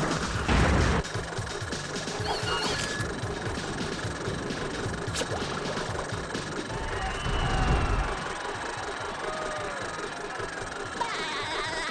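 Upbeat cartoon-style music plays steadily.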